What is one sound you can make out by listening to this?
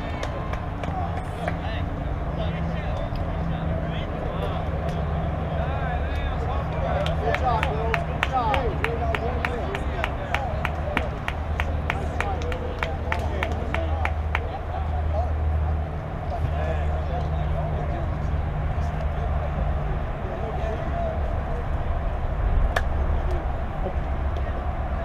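Young female softball players call out in the distance across an open field.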